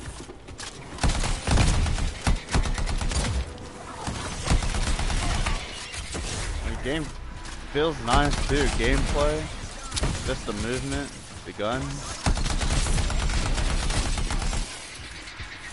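Gunfire rattles in rapid bursts with heavy blasts.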